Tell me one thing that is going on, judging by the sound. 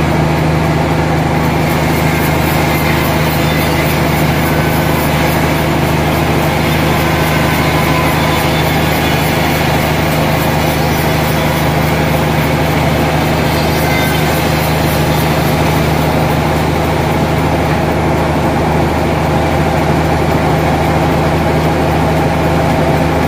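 A machine motor hums loudly and steadily.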